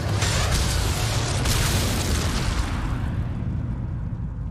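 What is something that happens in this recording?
An explosion roars and slowly dies away.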